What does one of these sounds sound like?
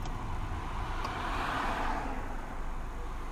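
A vehicle whooshes past close by.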